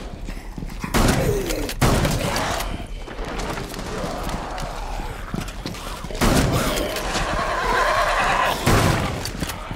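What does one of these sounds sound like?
A gun fires a few loud shots.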